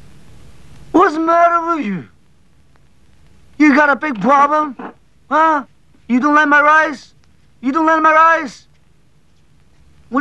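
A man talks loudly close by.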